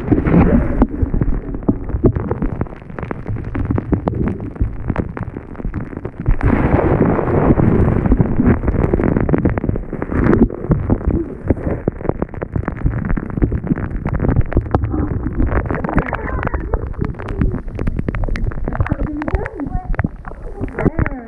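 Water splashes and sloshes close by as hands stir it.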